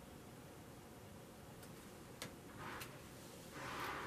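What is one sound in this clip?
A card taps softly onto a table.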